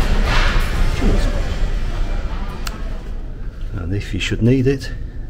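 A man speaks calmly close by.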